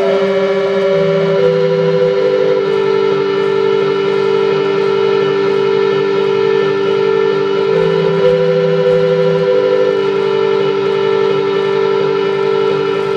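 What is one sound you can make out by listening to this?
Sustained electronic drone tones play through loudspeakers, with slow shifting pitches.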